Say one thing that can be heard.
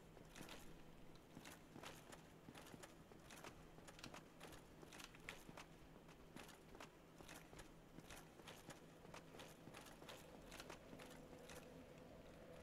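Armored footsteps clank quickly on stone steps.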